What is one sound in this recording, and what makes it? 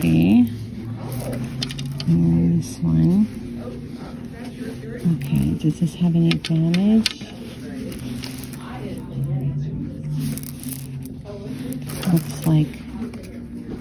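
Strands of beads clack softly as a hand handles them.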